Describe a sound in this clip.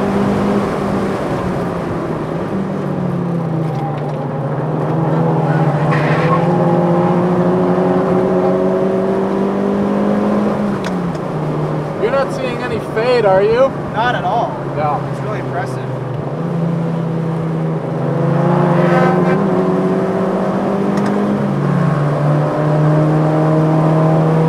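A car engine roars steadily, rising and falling in pitch as the gears change.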